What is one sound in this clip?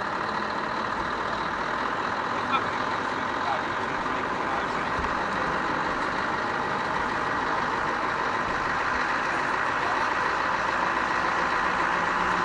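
A heavy truck engine rumbles steadily nearby.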